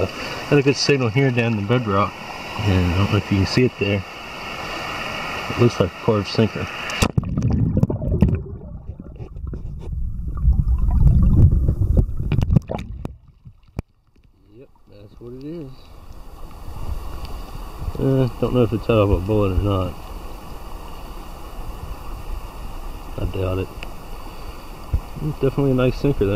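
A stream rushes and splashes over rocks nearby.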